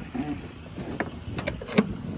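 A hand knocks against a metal fitting on a boat.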